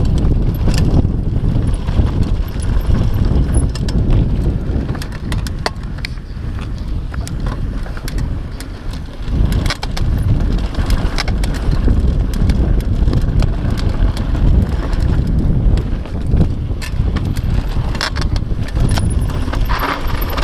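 Bike tyres crunch and rattle over a dry dirt trail.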